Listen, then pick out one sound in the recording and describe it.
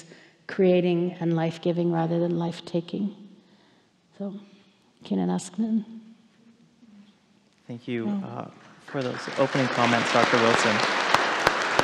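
An elderly woman speaks with animation into a microphone.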